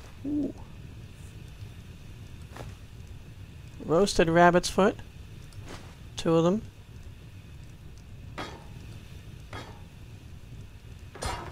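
A fire crackles softly in a hearth.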